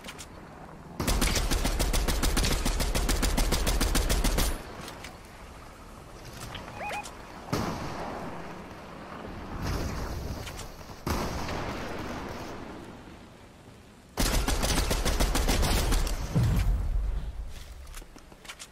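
Rifle shots fire in rapid bursts, close by.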